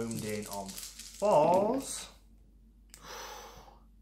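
Dice clatter as they are rolled across a hard board.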